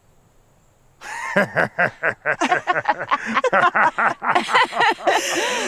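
Two women laugh loudly and heartily nearby.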